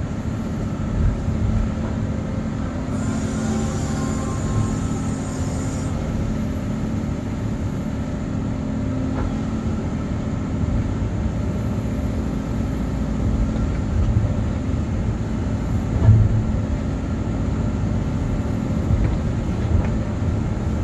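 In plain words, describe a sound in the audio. Metal knocks and clanks now and then.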